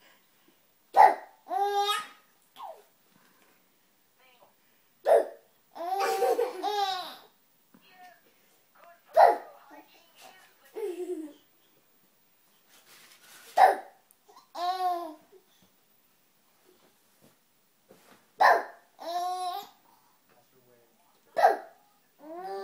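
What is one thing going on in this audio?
A young girl makes short, sharp sounds close by, again and again.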